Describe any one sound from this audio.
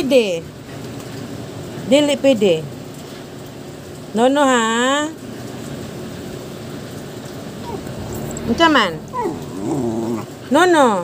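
A dog howls and whines in short bursts close by.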